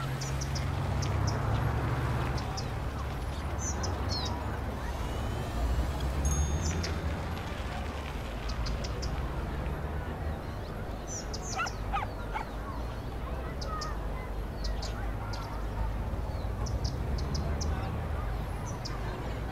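City traffic hums steadily as cars and buses drive along a wide road.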